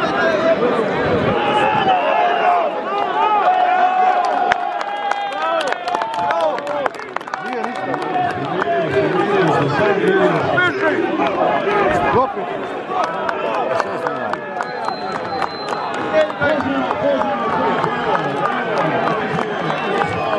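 A large outdoor crowd shouts, whistles and cheers loudly.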